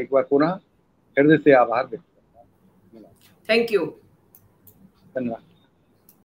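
An older man speaks with animation through an online call.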